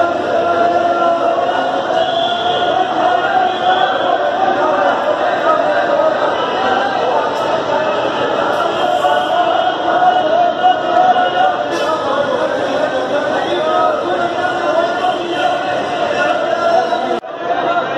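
A crowd of people chatters in a busy echoing hall.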